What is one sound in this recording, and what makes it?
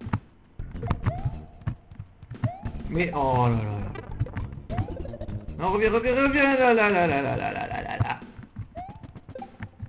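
A video game character makes short rising jump sounds.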